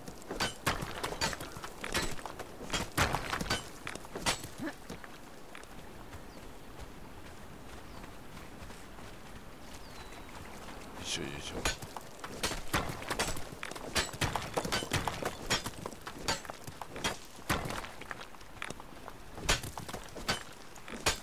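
Rock cracks and crumbles under repeated pickaxe blows.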